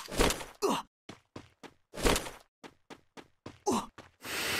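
Footsteps tap quickly across the ground.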